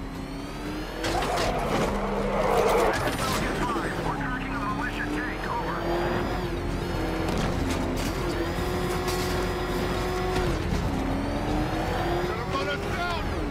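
A powerful car engine roars and revs as a vehicle speeds along.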